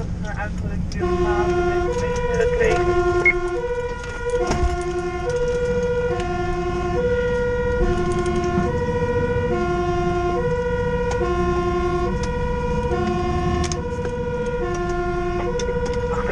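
A two-tone fire engine siren wails loudly in a steady alternating pattern.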